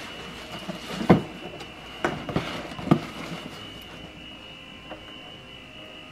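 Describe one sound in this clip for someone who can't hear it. A cardboard box is handled with soft thuds.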